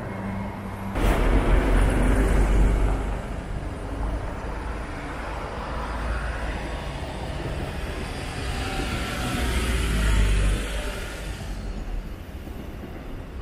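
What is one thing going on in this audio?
Car tyres hiss on the road as cars drive past.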